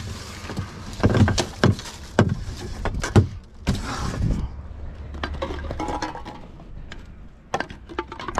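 Bottles and cans clatter as they are dropped into a bin.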